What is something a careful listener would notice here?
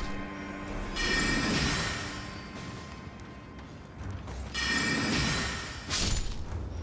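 A magic spell whooshes and shimmers as it is cast.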